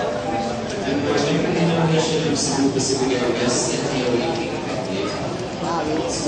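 Several people talk in the background of a large echoing hall.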